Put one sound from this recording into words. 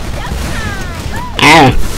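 An explosion booms and crackles.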